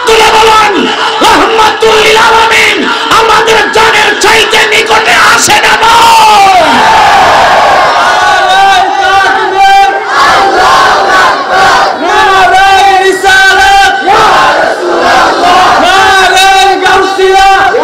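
A young man preaches passionately into a microphone, his voice loud and echoing through loudspeakers.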